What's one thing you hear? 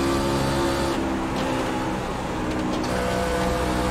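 A race car engine eases off briefly and then picks up again.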